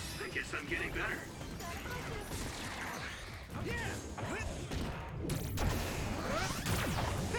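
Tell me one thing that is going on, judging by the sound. Magic blasts burst and whoosh.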